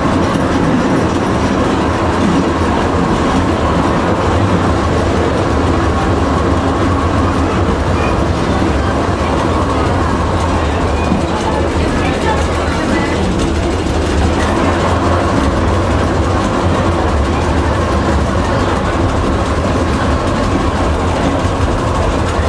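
Train wheels clatter over the rails and switches.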